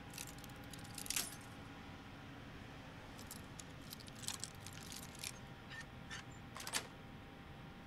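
A metal lock pick scrapes and clicks inside a lock.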